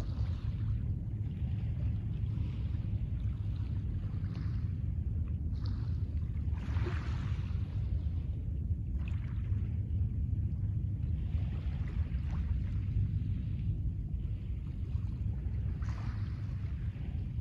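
Small waves lap gently on a pebble shore.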